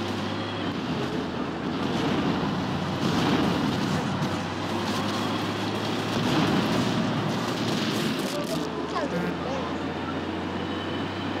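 A tank engine rumbles in a video game.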